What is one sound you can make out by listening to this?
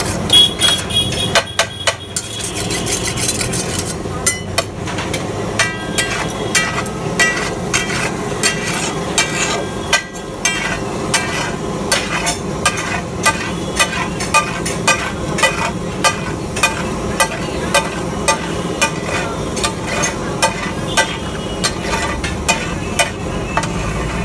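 A metal spatula scrapes and clanks rhythmically against a hot iron griddle.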